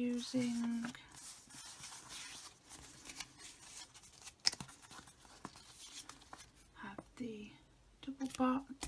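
Paper sheets rustle and crinkle as they are handled.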